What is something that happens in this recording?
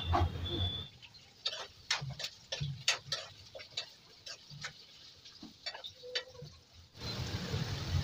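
A spatula scrapes and clinks in a metal pan.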